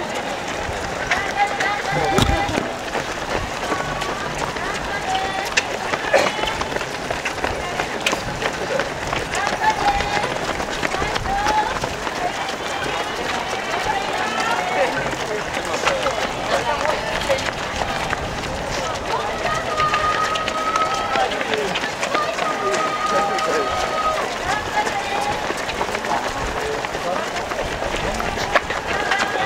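Many runners' footsteps patter on pavement.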